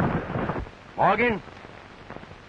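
A man shouts out loudly.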